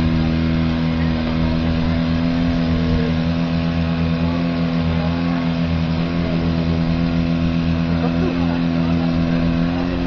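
An engine drones steadily nearby.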